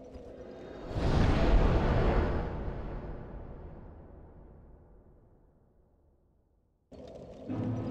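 A deep rushing whoosh swells loudly and slowly fades away.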